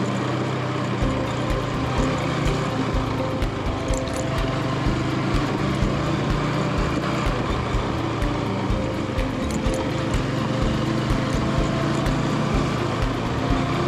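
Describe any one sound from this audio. Tyres rumble and bump over a rough dirt road.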